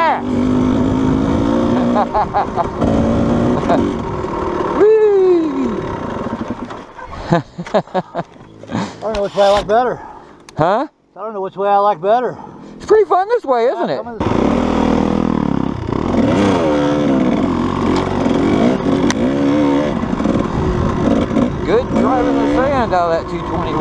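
A dirt bike engine drones and revs up and down close by.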